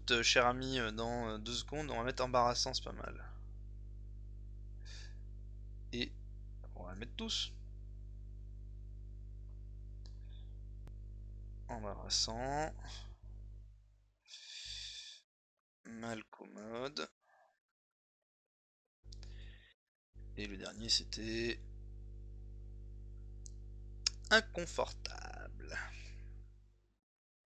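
A man speaks calmly close to a microphone, with pauses.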